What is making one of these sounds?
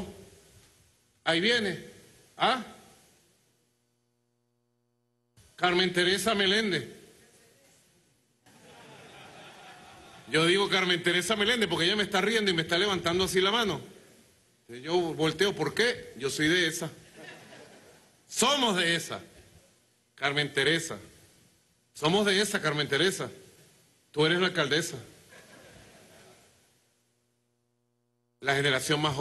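A man speaks with animation into a microphone, with pauses.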